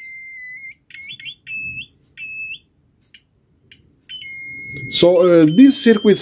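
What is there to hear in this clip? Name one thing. A piezo buzzer emits shrill, high-pitched beeps in short bursts.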